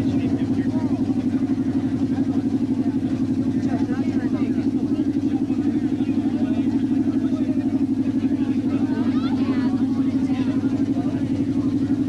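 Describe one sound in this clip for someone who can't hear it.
A steady, rapidly pulsing electric buzz drones from equipment close by.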